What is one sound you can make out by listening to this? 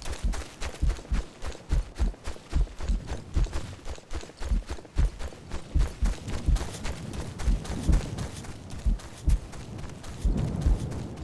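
Footsteps tread quickly and steadily through dry grass and brush.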